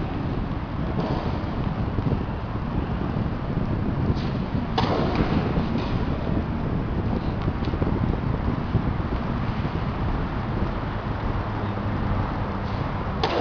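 A tennis racket strikes a ball with a sharp pop in a large echoing hall.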